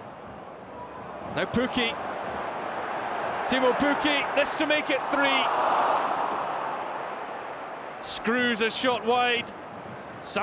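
A large crowd cheers and roars, swelling loudly then fading.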